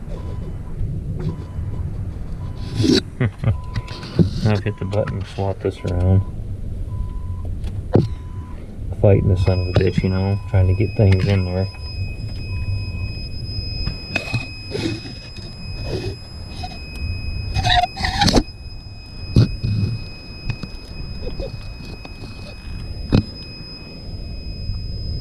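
Hands rustle and knock against cables and metal parts close by.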